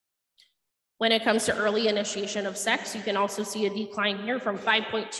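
A young woman speaks steadily into a microphone, heard through a loudspeaker in a large room.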